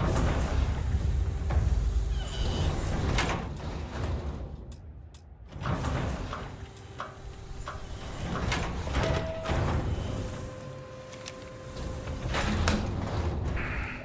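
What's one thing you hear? A heavy airlock door hisses and thuds as it cycles open.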